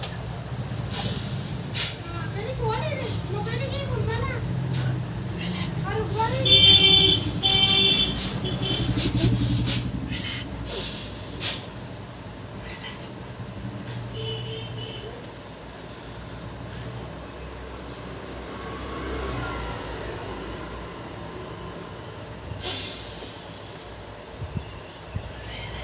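Hands slap and tap rhythmically on a man's head.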